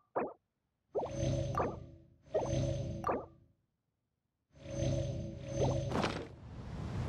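A short chime rings out a few times.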